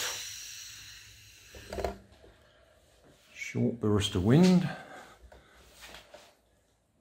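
Small plastic wheels roll across a wooden floor.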